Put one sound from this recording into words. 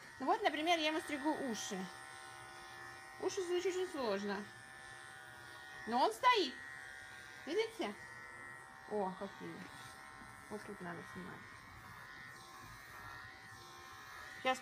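Electric clippers buzz steadily up close.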